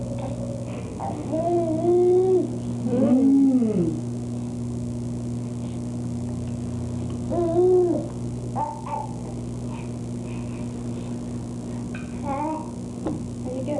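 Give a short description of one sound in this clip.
A woman speaks softly and playfully to a baby close by.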